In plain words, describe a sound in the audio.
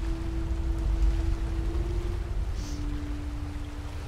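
Water splashes and pours steadily from a turning water wheel.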